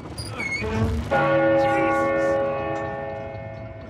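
A large bell rings loudly and rings on.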